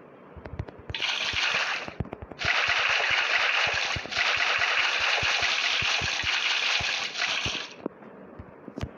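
Water gushes and splashes steadily.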